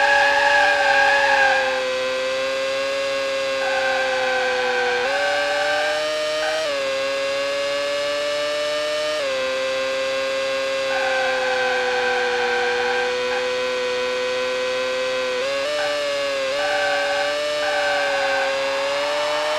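Tyres squeal in bursts.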